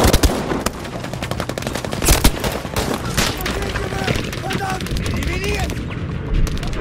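Rapid gunfire cracks and rattles close by.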